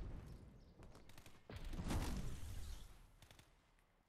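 Gunfire bursts from a video game.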